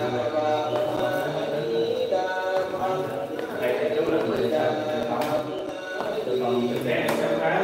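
Footsteps thud on a wooden staircase.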